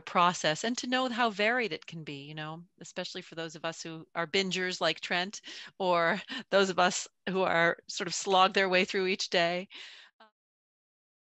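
A middle-aged woman speaks warmly over an online call.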